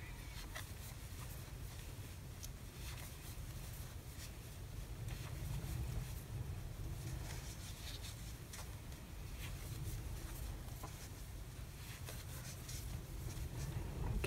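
A crochet hook softly clicks and scrapes against yarn.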